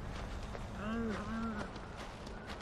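An animal gives a short wavering call nearby.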